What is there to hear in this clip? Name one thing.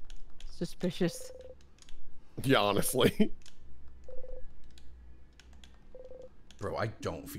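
Short electronic beeps sound as game text types out.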